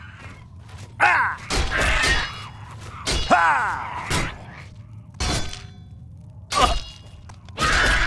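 A creature screeches and snarls.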